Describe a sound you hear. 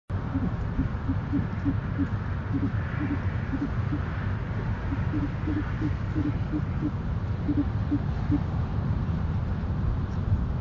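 An owl shifts and rustles its feathers on a nest.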